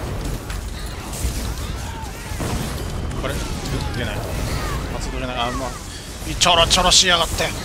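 Weapons strike with sharp hits.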